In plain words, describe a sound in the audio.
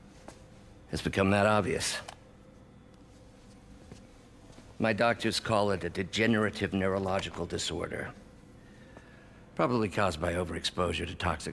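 An older man speaks calmly and gravely.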